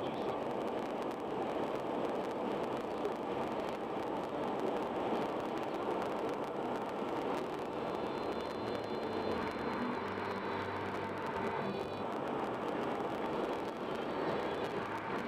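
Tyres roar steadily on a highway as a car drives along.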